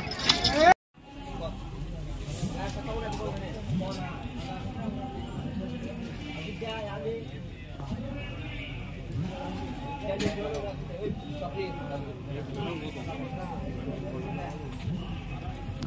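Several people chat quietly in the distance.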